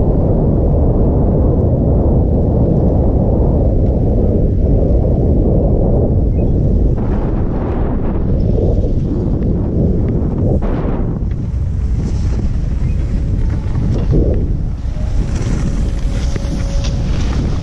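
Skis hiss and scrape over packed snow.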